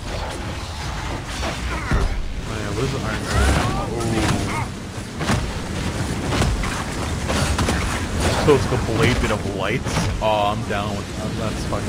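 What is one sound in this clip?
Fire roars and crackles along the ground.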